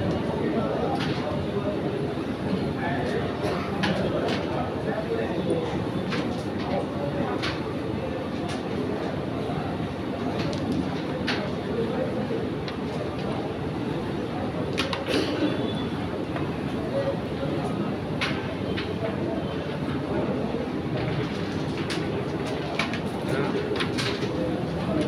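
Wooden game pieces click sharply as they are flicked and knock together on a board.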